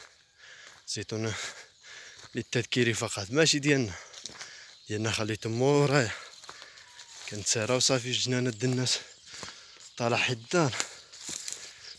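A young man talks close to the microphone in short bursts, outdoors.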